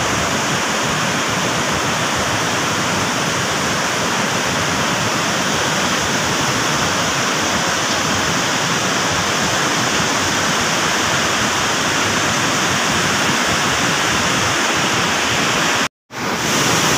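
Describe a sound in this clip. Floodwater roars and churns loudly.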